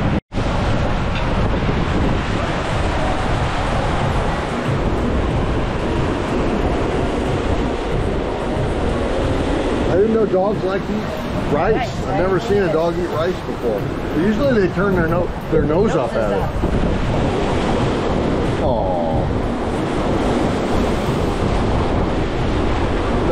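Waves wash against a shore nearby.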